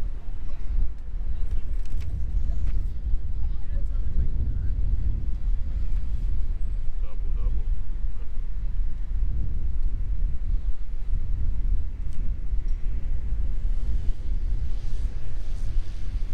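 Wind rumbles loudly across a microphone outdoors.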